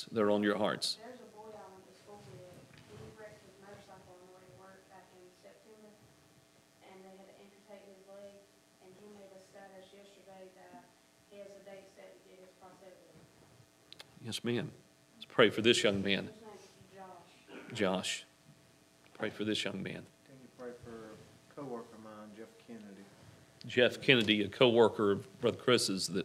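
A man speaks through a microphone, sometimes calmly and sometimes with loud emphasis, in an echoing room.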